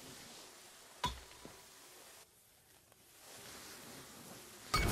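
A fiery magic blast bursts with a sharp crack.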